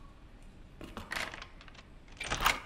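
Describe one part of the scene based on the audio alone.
A metal latch on a door clicks and slides open.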